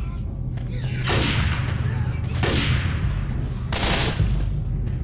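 Gunshots ring out at slow intervals.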